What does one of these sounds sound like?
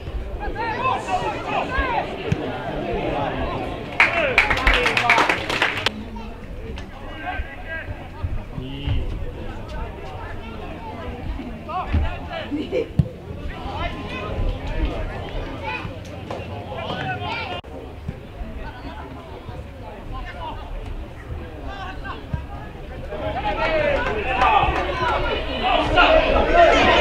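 Players shout to each other across an open outdoor pitch.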